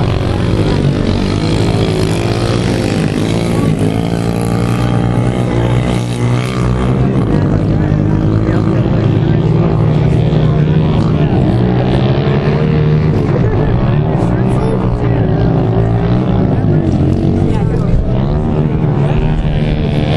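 Small motorbike engines buzz and rev as the bikes ride over dirt.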